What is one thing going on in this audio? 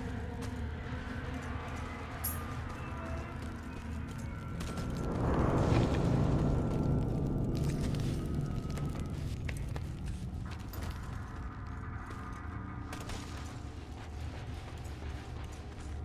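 Footsteps run on stone in an echoing cave.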